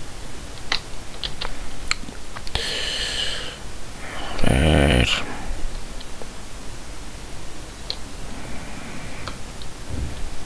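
Short soft clicks sound as menu items are selected.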